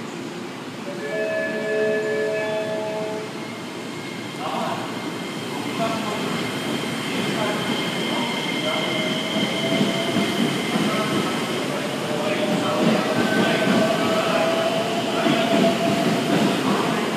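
Train brakes squeal with high, drawn-out tones.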